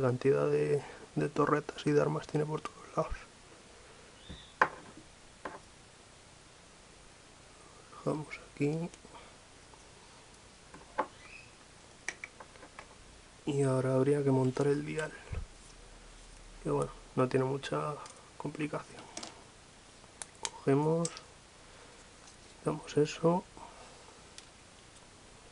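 Plastic game pieces click and tap against a wooden table.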